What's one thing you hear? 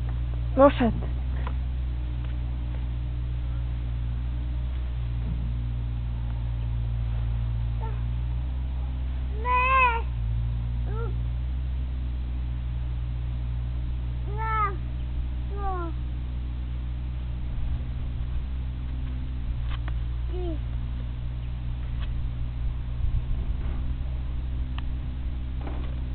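Horses munch and chew hay close by.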